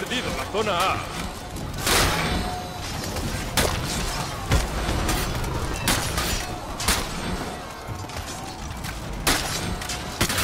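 Swords clash and strike shields in a battle.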